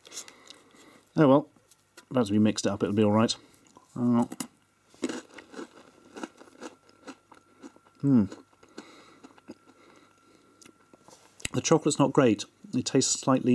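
A snack stick scrapes inside a plastic cup.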